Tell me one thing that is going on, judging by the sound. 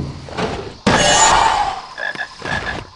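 A chest creaks open with a magical chime.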